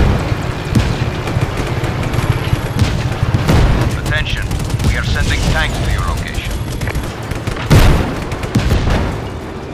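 A tank cannon fires.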